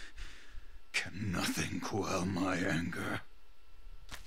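A man speaks in a deep, angry voice.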